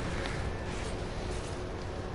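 A truck engine rumbles.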